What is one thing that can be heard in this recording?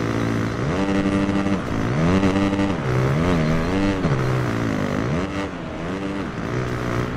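A motocross bike engine revs up and down loudly as it races.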